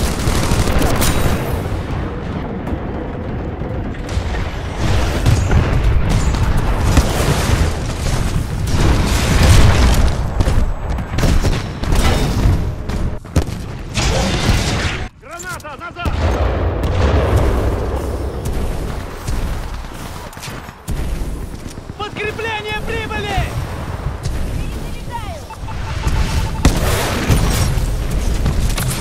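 Heavy gunfire booms rapidly from a large weapon.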